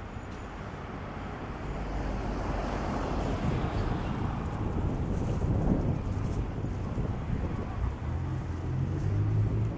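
Footsteps tread along a pavement outdoors.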